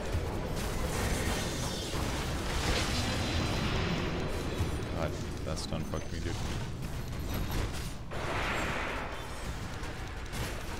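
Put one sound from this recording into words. Fiery blasts and magic effects crackle and boom.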